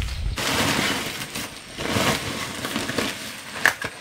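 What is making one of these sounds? A plastic sack rustles and crinkles as it is dragged.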